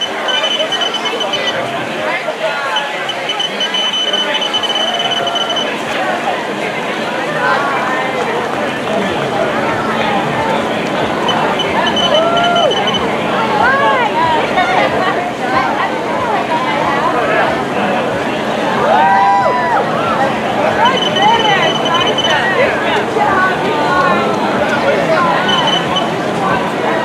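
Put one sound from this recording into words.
A timing system beeps rapidly as runners cross a finish line.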